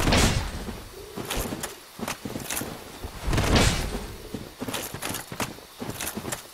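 Armoured footsteps crunch over the ground.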